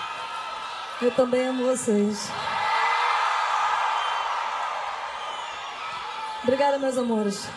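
A woman sings loudly into a microphone over a live sound system.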